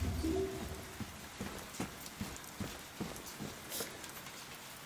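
Footsteps thud slowly on stairs.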